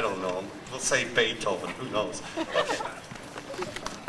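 A man announces through a loudspeaker outdoors.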